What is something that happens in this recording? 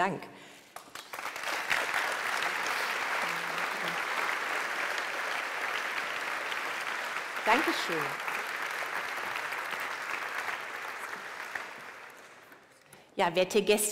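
A large audience applauds steadily.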